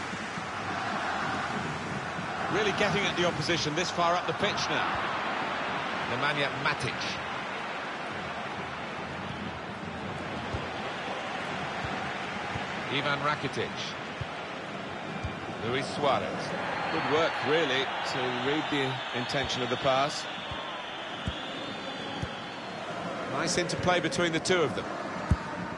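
A stadium crowd murmurs and cheers steadily in a large open space.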